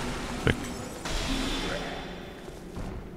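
A magic bolt whooshes through the air.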